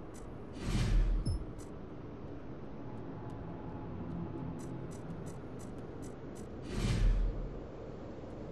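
A deep whooshing swell sounds as a card is picked.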